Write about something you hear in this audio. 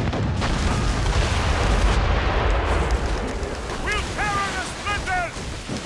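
Cannonballs splash into the sea.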